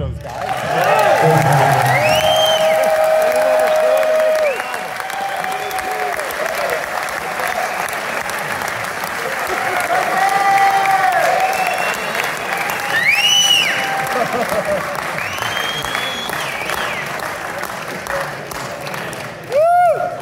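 A rock band plays loudly through amplifiers in a large hall.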